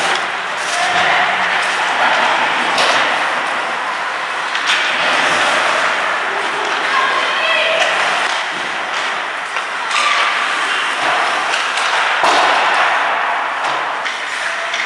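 Young players shout across a large echoing rink.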